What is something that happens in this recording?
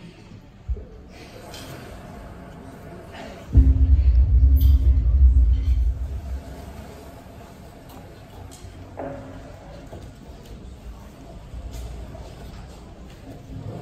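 Two drum kits play together in an echoing hall.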